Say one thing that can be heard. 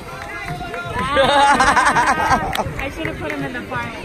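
A young woman laughs and cheers excitedly close by.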